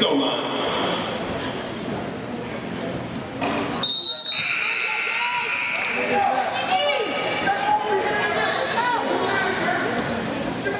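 Young players call out to each other across the court.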